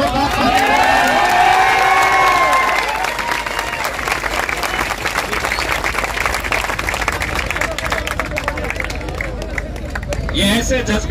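People in a crowd clap their hands.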